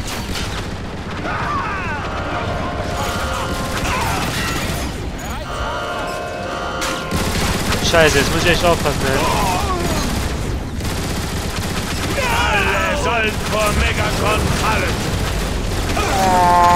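A heavy energy gun fires in rapid bursts.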